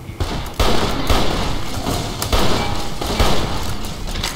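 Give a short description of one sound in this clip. Gunshots from a rifle crack in a video game.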